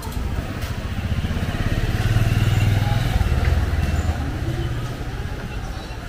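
A motor scooter hums past close by.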